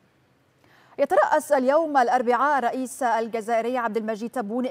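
A woman speaks clearly and steadily into a microphone.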